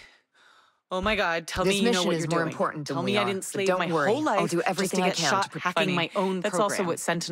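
A young woman speaks in reply.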